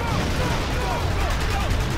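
A rifle fires rapid bursts.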